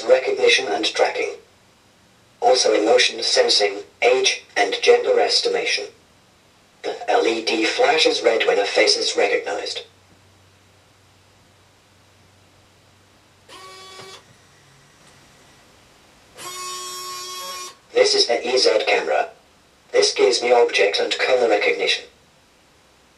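A synthetic robot voice speaks through a small loudspeaker.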